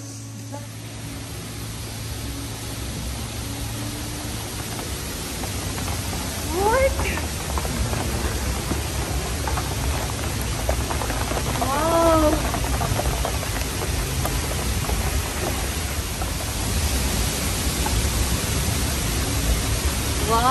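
Water from a waterfall roars steadily nearby, growing louder.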